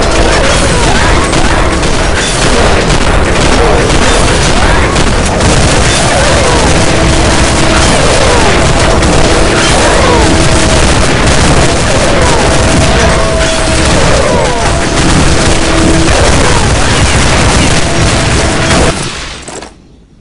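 Zombies growl and roar.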